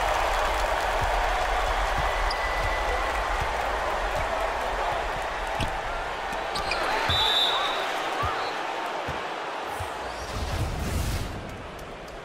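A large crowd cheers and roars in an arena.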